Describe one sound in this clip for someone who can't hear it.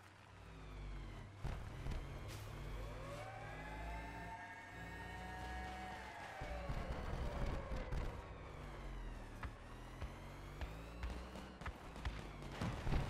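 A vehicle engine revs up and down.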